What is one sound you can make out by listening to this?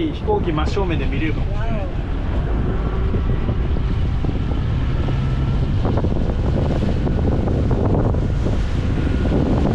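A young man laughs and talks nearby.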